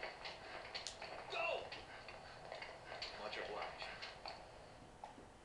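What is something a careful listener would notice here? Footsteps run across hard pavement.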